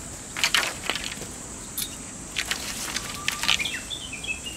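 Bamboo poles clatter against each other.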